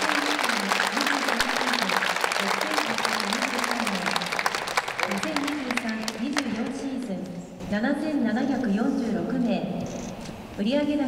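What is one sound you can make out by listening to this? A young woman talks brightly, heard through a radio broadcast.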